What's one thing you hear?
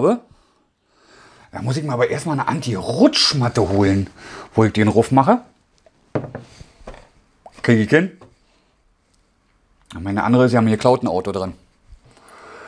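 A man talks calmly and close by, pausing now and then.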